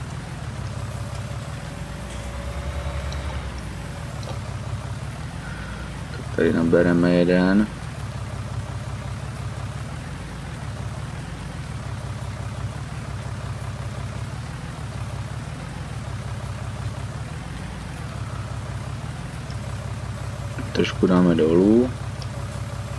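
A tractor engine idles and rumbles steadily.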